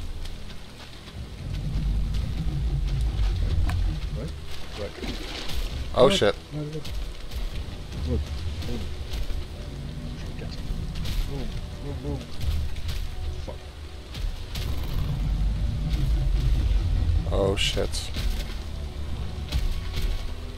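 Wind rumbles low and steady outdoors.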